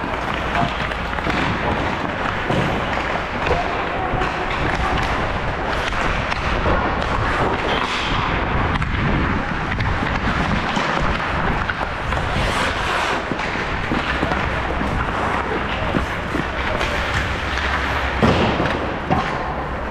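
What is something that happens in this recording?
Ice skates scrape and carve across an indoor rink, echoing in a large hall.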